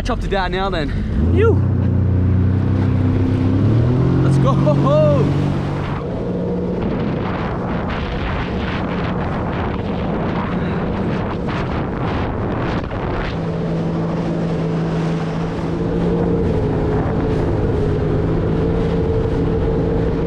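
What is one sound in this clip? Water splashes and rushes past a jet ski.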